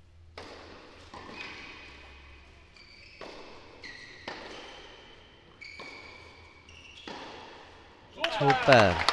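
A tennis ball is struck back and forth with rackets, each hit a sharp pop.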